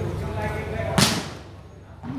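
A ball is struck hard with a sharp slap.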